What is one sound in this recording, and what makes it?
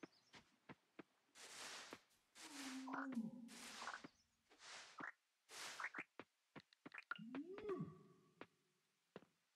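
Light footsteps tap on the ground.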